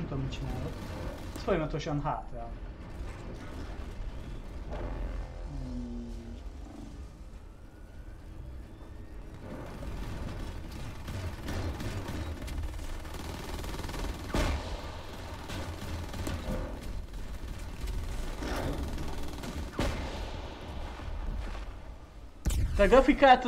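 Gunfire and laser blasts crackle in a battle.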